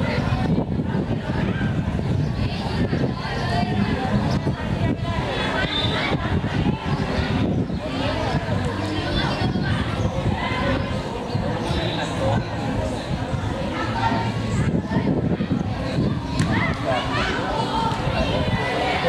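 Children shout and call out across a playing field.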